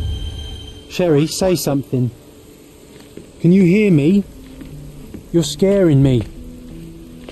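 A man calls out anxiously.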